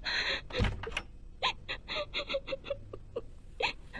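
A door opens with a click.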